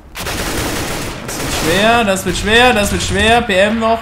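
Rapid gunfire rattles from a rifle.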